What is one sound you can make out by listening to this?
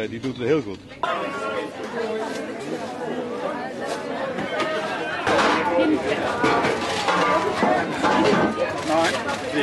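A crowd of shoppers chatters in a busy outdoor market.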